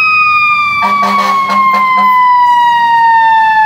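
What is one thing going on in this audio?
A fire engine's horn blasts in short bursts.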